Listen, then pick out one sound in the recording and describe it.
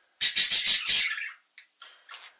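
A small bird chirps.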